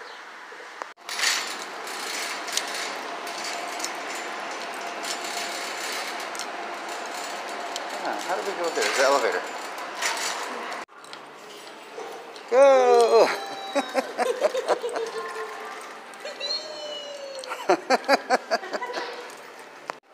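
A shopping cart rattles as it rolls along a hard floor.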